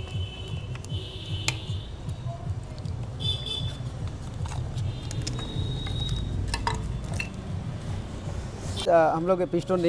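Small metal parts clink and tap against each other close by.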